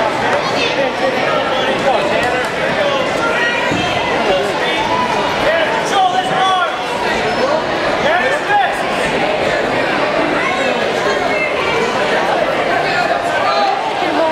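Men and women in the crowd shout and cheer loudly.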